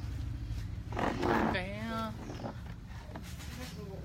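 A plastic stool scrapes across a hard floor.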